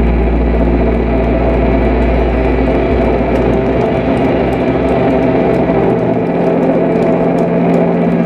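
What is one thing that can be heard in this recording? A rock band plays loudly through big outdoor speakers, with electric guitars and drums.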